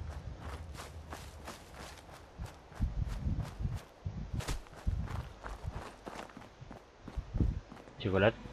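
Footsteps crunch steadily on gravel and dry ground.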